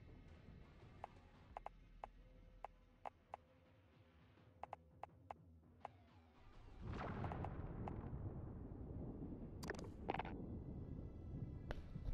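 Short menu clicks tick now and then.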